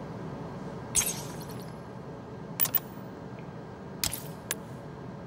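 Short menu clicks sound a few times.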